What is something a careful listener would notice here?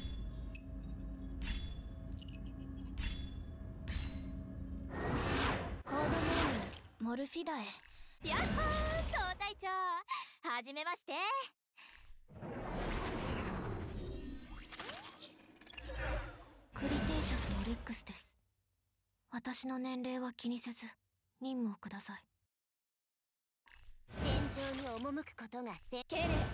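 Electronic game sound effects chime and whoosh.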